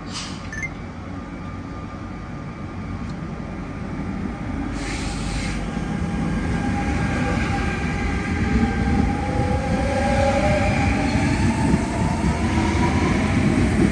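An electric train pulls away and speeds up, its motors whining higher as it goes.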